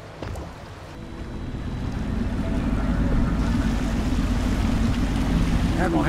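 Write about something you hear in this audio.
A boat's motor hums steadily over the water.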